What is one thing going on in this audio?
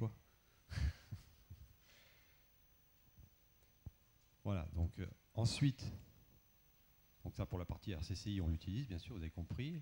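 A man speaks to an audience through a microphone in a large hall, pausing between phrases.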